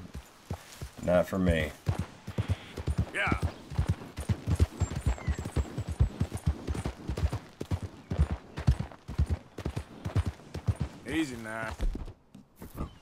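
Horse hooves clop steadily at a trot on a dirt path.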